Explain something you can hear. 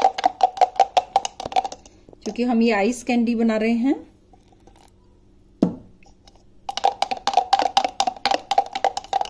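A metal spoon stirs quickly inside a glass jar, clinking against the sides.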